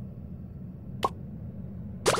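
A short game chime rings as an item is collected.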